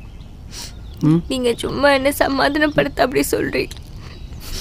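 A young woman answers softly close by.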